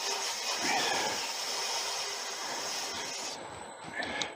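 Sandpaper rubs with a soft hiss against a spinning workpiece.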